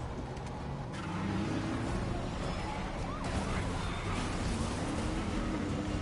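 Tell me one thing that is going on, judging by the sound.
A car engine rumbles as a car drives along.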